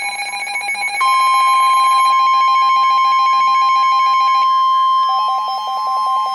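A loud steady alert tone sounds from a weather radio.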